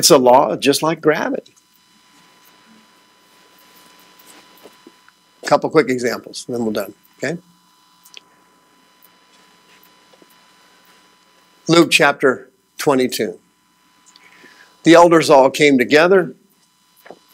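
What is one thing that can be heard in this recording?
A man speaks calmly to an audience in a quiet room, heard through a microphone, with pauses.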